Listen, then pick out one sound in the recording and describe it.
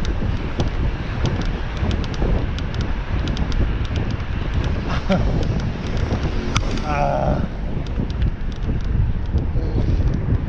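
Wind rushes loudly past a moving bicycle rider.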